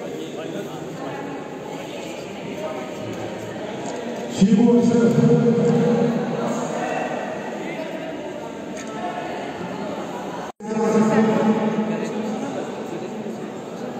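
A young man speaks loudly through a microphone in a large echoing hall.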